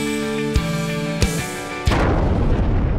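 Drums and cymbals crash.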